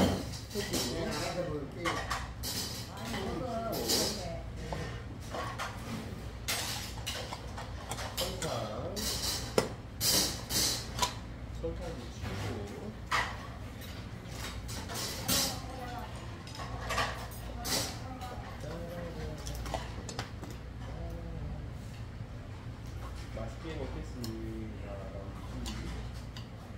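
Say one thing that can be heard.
Spoons and chopsticks clink against bowls.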